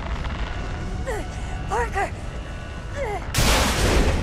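A young woman shouts in alarm.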